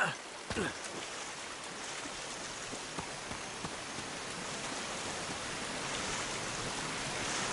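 A waterfall rushes and splashes, growing louder.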